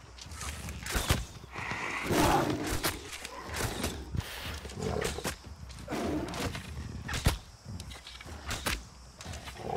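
A bowstring snaps as arrows are fired.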